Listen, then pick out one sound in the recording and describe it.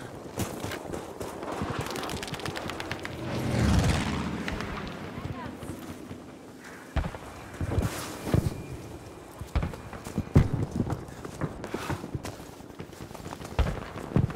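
Gunshots and explosions crack and boom at a distance, on and off.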